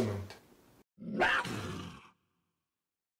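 A lion cub gives a small roar.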